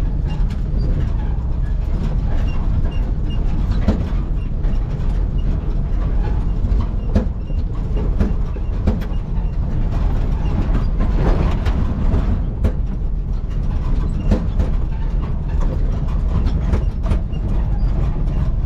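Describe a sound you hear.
Tyres crunch and bump over loose rocks.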